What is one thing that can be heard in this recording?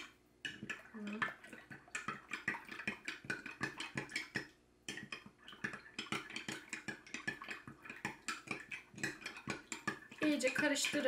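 A spoon clinks rapidly against a glass while stirring.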